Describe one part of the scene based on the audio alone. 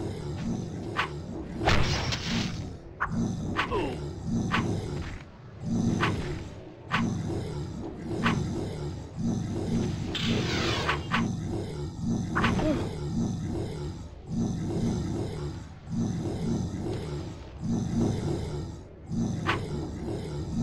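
Swords clang and strike in a fight.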